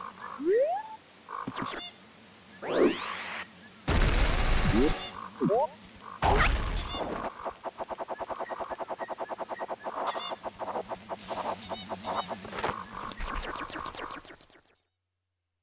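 Video game sound effects whoosh, spin and chime.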